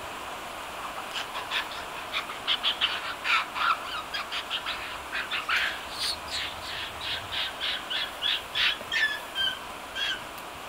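A monkey crunches and munches snow close by.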